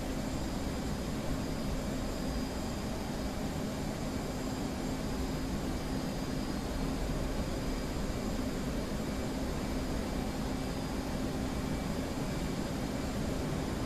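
Air rushes steadily past the canopy.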